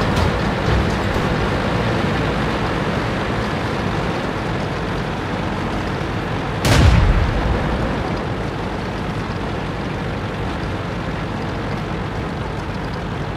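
A heavy tank engine rumbles steadily as the tank drives along.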